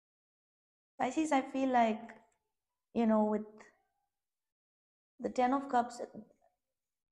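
A young woman speaks calmly close to a microphone, in short phrases with pauses.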